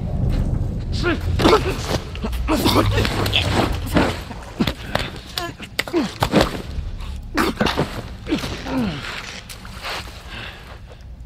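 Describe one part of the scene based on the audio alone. An infected creature shrieks and gurgles as it attacks.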